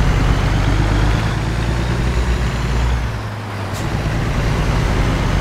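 Tyres roll on the road with a low hum.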